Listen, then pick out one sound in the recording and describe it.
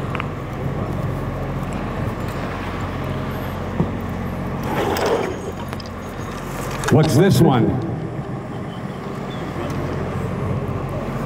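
A man speaks calmly into a microphone, heard through a loudspeaker outdoors.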